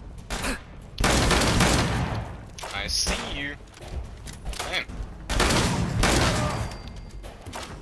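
A double-barrelled shotgun fires with a loud explosive blast.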